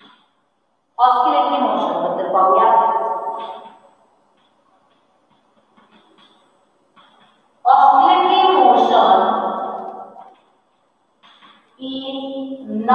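A woman speaks clearly and slowly, as if dictating.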